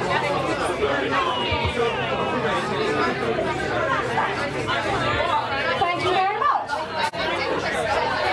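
A band plays loud rock music.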